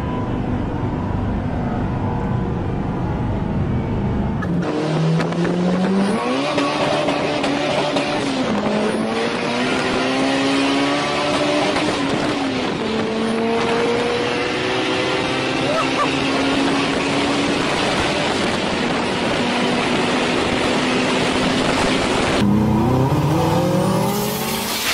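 A car engine roars and revs up through the gears.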